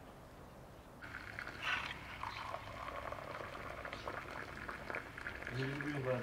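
Water pours splashing into a glass.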